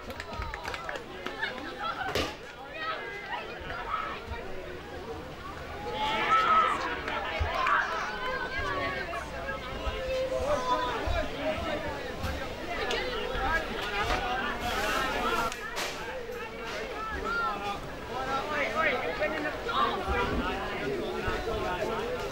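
Young girls chatter and cheer excitedly outdoors.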